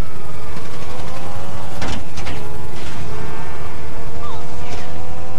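A motorcycle engine revs higher.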